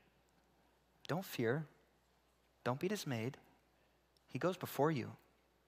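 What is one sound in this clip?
A man speaks in short, emphatic bursts, heard through a microphone.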